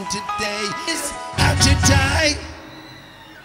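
A man sings loudly into a microphone over a loudspeaker system.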